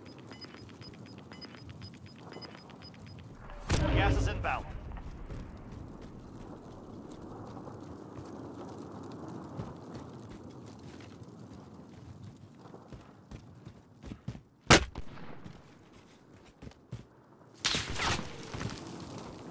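Footsteps crunch quickly over snowy ground.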